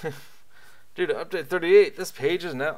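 A middle-aged man speaks casually into a close microphone.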